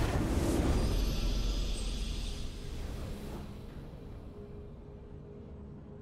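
A triumphant fanfare plays and fades.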